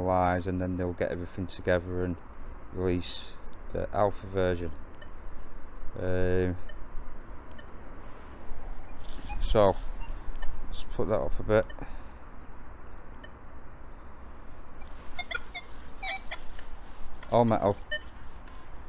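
A metal detector sounds short, warbling electronic tones.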